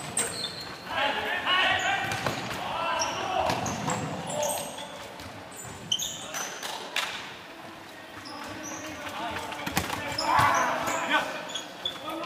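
Young men shout to one another across a large echoing hall.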